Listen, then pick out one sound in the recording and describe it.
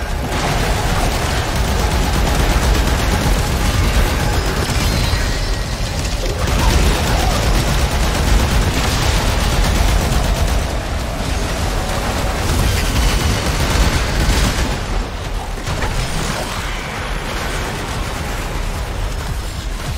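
Electric blasts crackle and buzz continuously.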